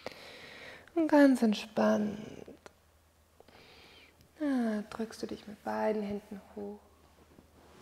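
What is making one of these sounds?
A woman speaks calmly and softly into a microphone.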